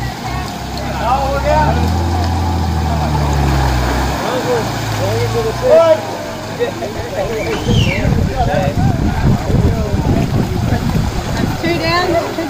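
Several men and women talk and call out outdoors.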